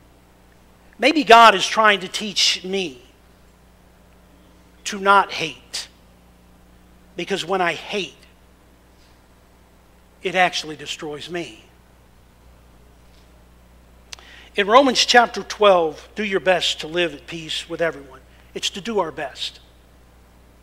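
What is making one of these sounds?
A middle-aged man speaks calmly into a microphone in short phrases with pauses.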